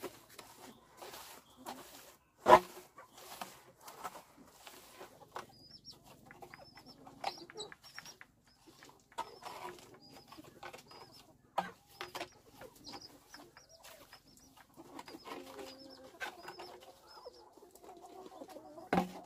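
A wooden straightedge scrapes and slaps across wet concrete.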